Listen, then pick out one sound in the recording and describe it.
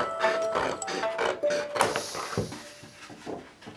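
Sheets of paper rustle as they are handled.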